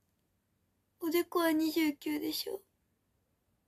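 A young girl speaks softly and close by.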